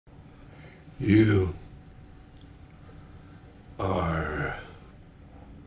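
An elderly man speaks in a weak, strained voice up close.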